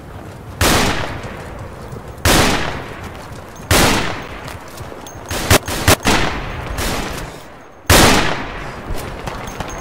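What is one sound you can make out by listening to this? Loud rifle shots ring out and echo away.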